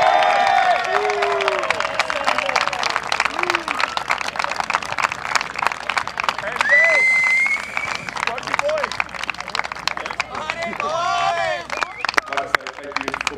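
A crowd of people applauds outdoors.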